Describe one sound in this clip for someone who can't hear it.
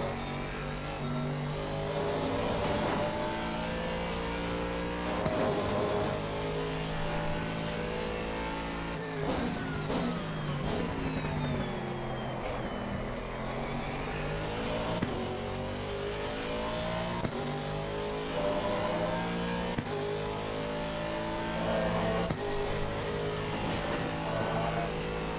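A racing car engine roars, revving up through the gears and dropping in pitch under braking.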